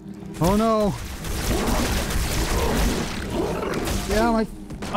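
A weapon fires with a roaring, crackling blast.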